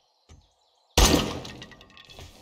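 A rifle fires a single loud shot indoors.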